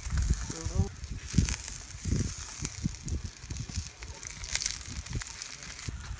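A wooden spatula scrapes against a frying pan.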